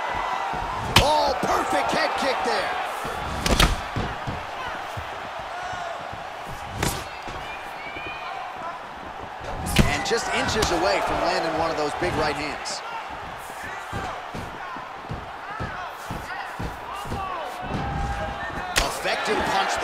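Blows land with sharp thuds.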